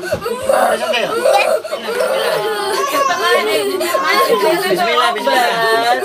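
A young child wails and cries loudly close by.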